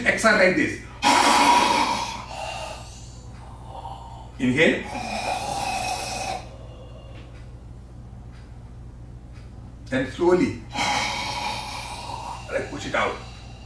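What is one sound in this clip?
A man breathes out forcefully through his mouth.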